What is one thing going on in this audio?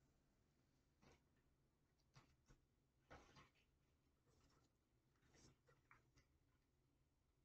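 Cards slide and tap softly on a wooden table.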